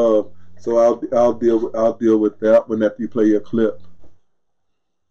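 An older man speaks calmly and clearly into a close microphone.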